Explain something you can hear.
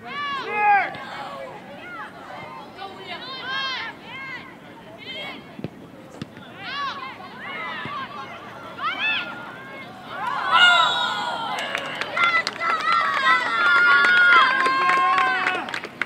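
Young women shout to each other across an open outdoor field.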